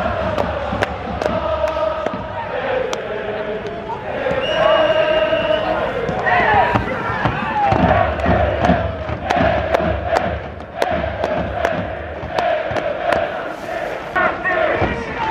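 A large stadium crowd chants and sings in unison, echoing around the stands.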